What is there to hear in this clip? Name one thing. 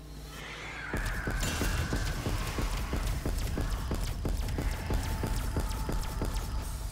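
A ray gun fires rapid, buzzing blasts.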